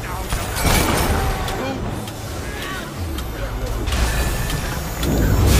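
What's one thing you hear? Weapons clash in a fight.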